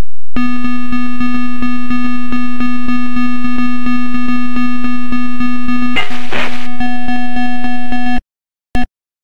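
Upbeat electronic game music plays with a steady, fast beat.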